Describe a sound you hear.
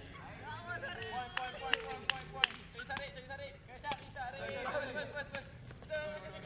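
A shuttlecock is hit back and forth with sharp pops of rackets.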